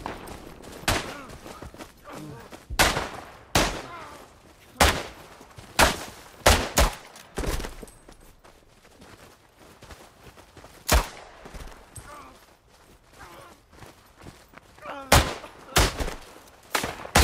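Pistol shots crack sharply, one at a time.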